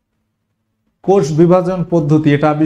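A man speaks with animation, close to a microphone.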